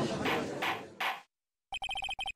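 A gavel bangs once sharply.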